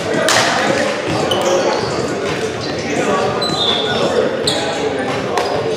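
A volleyball thumps against hands.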